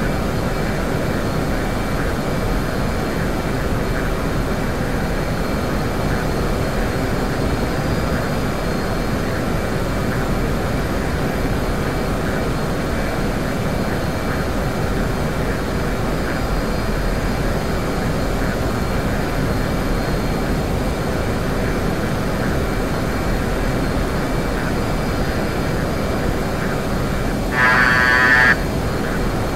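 A jet engine roars steadily from inside the cockpit.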